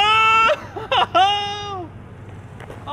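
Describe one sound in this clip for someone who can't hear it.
A young man shouts and cheers excitedly outdoors.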